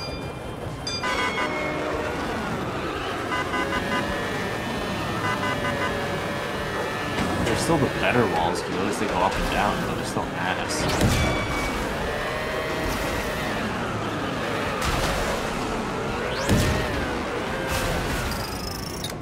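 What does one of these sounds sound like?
Small racing car engines whine and buzz, rising and falling in pitch.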